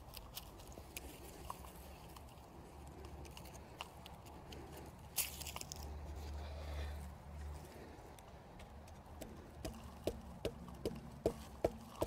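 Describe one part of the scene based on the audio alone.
Loose soil crumbles and patters as a plant's roots are shaken.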